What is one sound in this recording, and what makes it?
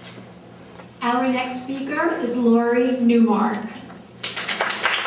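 A middle-aged woman speaks into a microphone.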